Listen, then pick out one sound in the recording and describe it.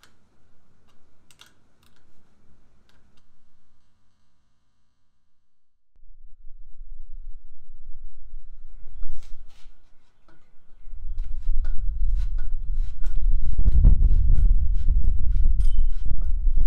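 Small metal tools tick and click against a bicycle's parts.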